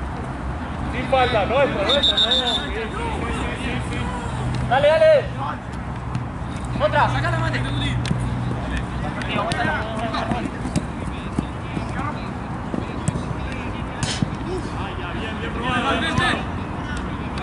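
Young men call out to each other across an outdoor pitch.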